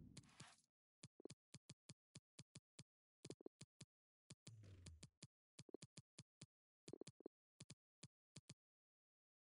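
Short game menu clicks tick rapidly, one after another.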